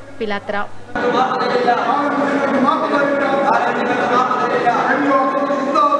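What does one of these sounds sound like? A group of men and women chant slogans together in an echoing hall.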